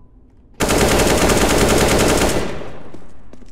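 An AK-47 rifle fires a rapid burst of gunshots.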